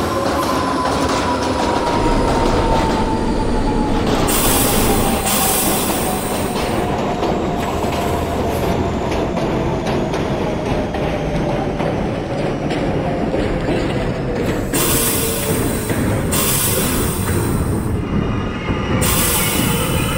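Train wheels rumble and clatter steadily over rails.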